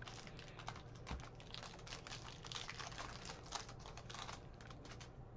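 A plastic wrapper crinkles and tears as a card pack is opened.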